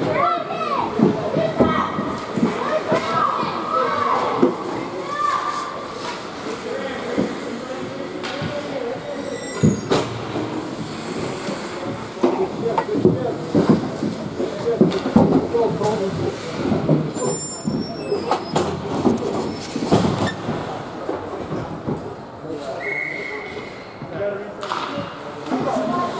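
Spectators nearby chatter and call out.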